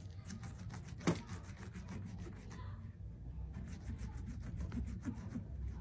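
A wooden pole scrapes and taps in a plastic bowl.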